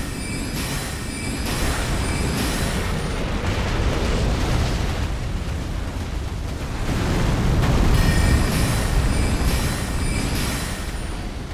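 Lava rumbles with a deep, steady roar.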